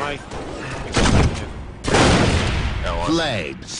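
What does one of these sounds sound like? Gunfire bursts loudly in a video game.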